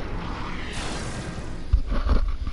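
A magical burst of smoke whooshes and swirls.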